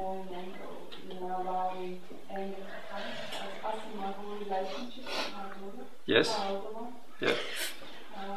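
A woman sniffles and blows her nose into a tissue.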